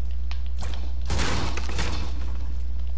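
A pickaxe smashes against a wooden fence.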